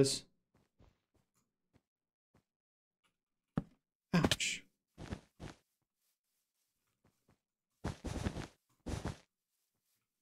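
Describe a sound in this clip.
Blocks are placed one after another with short, soft thuds.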